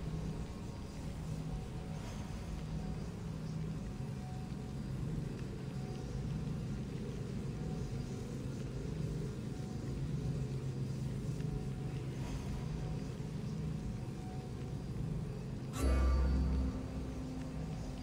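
A fire burns with a soft crackle.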